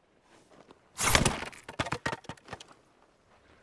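A sword swishes and slices through bamboo stalks in quick succession.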